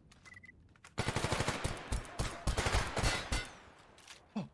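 A pistol fires rapid shots in quick bursts.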